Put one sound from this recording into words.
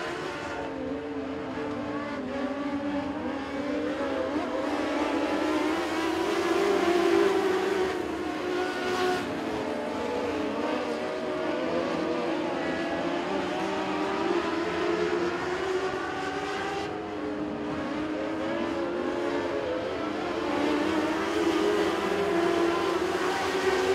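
Several race car engines roar loudly, rising and falling in pitch.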